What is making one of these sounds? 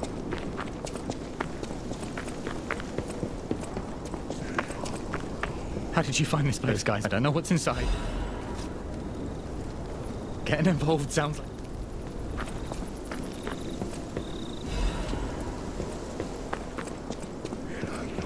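Footsteps crunch steadily over gravel and loose debris.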